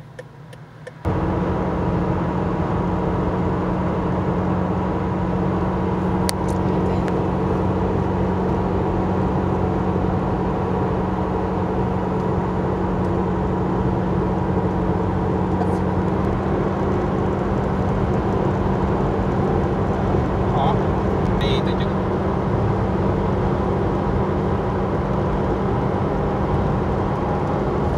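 A vehicle's engine hums steadily inside the cabin.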